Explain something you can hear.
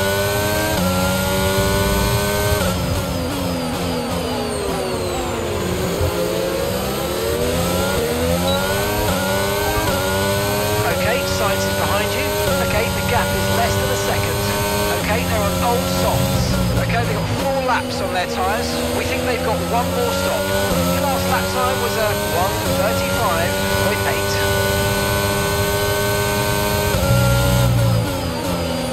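A racing car engine screams, rising through the gears and dropping as it brakes for corners.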